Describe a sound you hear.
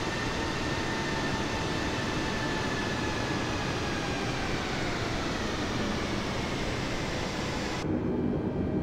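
Jet engines whine steadily, with the pitch slowly sinking.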